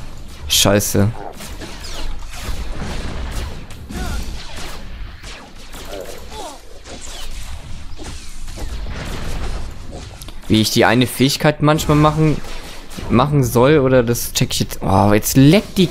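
Blasters fire in quick shots.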